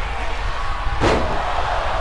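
A body slams onto a wrestling mat with a heavy thud.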